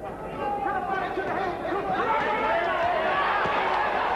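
Boxing gloves thud against a boxer's head and body.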